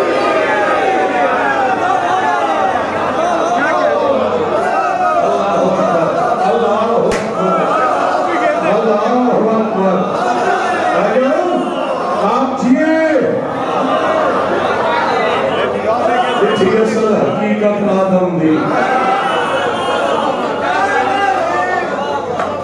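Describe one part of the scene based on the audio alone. A man speaks passionately through a microphone and loudspeakers in an echoing room.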